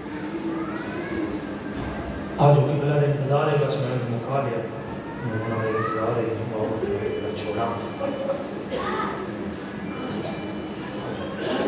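A young man recites with feeling through a microphone in an echoing hall.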